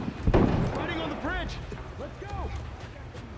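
A man shouts urgently.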